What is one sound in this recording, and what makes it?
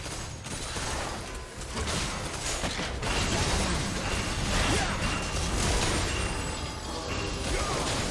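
Game spell effects crackle and burst rapidly during a fight.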